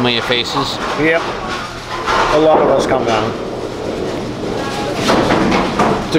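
A bowling ball rumbles down a wooden lane.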